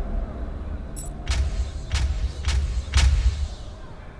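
Short sharp menu sounds tick in quick succession.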